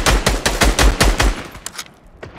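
A gun fires a rapid string of shots.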